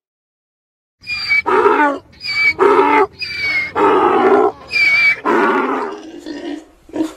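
A donkey brays loudly, again and again.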